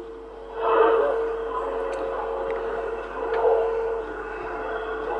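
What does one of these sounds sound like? A radio receiver crackles with static through its loudspeaker.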